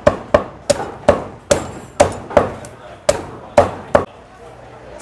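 A cleaver chops sharply through chicken on a wooden block, blow after blow.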